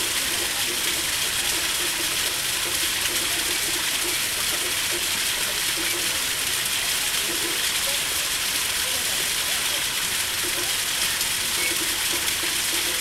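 Water splashes and trickles steadily into a pond.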